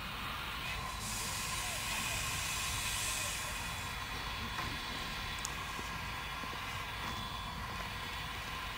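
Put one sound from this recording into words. A steam locomotive hisses, letting off steam.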